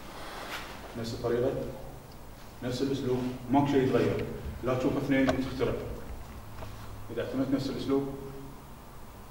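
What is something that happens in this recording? A middle-aged man speaks calmly nearby, explaining, in a room with some echo.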